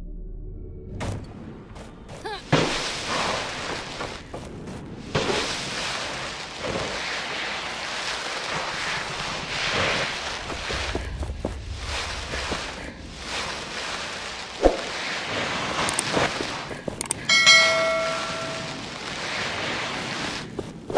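Footsteps run quickly over sand and stone steps.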